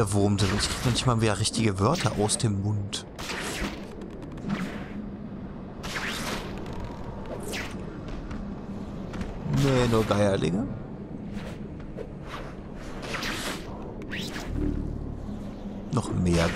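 Quick whooshes sweep past again and again as a figure swings through the air.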